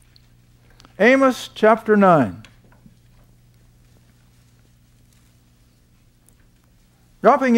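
An elderly man speaks calmly and clearly into a microphone, pausing between phrases.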